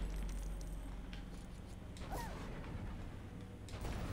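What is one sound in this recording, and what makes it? Small coins jingle and chime as they are picked up.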